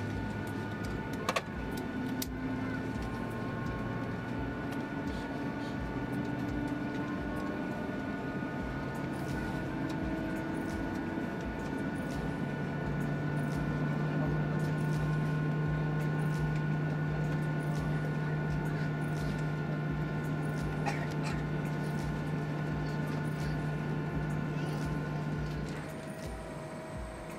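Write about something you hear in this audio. A jet engine hums steadily at idle.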